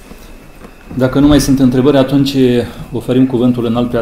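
A man speaks calmly into a microphone, heard through a loudspeaker in a room.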